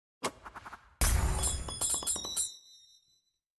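A chest opens with a bright magical chime in a game.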